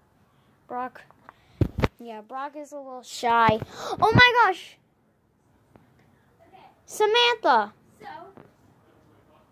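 A girl talks close up, with animation.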